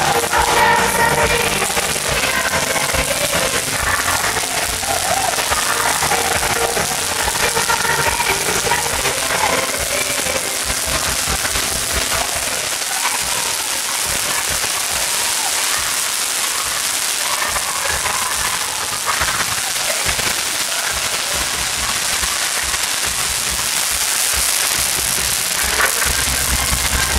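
Fireworks fizz and crackle loudly outdoors.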